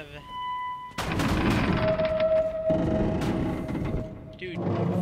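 Wind blows outside through broken windows.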